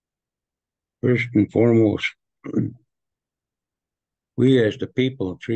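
A man speaks calmly through an online call microphone.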